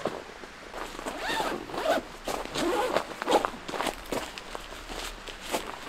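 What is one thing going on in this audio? Plastic clips click against a tent's fabric.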